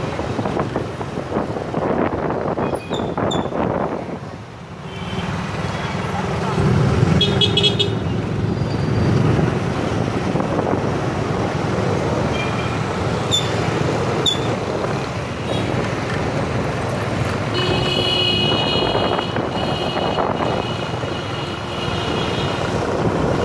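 Motorbike engines hum and buzz all around in busy street traffic.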